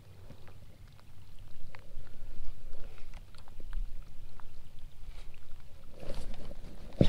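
A baitcasting reel whirs as line is reeled in.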